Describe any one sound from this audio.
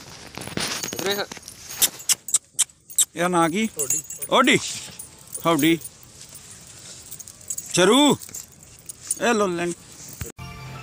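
A dog whines in short, high, wavering cries.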